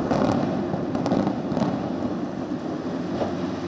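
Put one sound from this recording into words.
A building collapses with a deep, rolling rumble.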